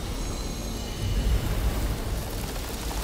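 A deep magical burst booms.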